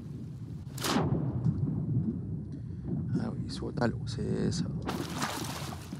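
Water gurgles and bubbles, muffled as if heard underwater.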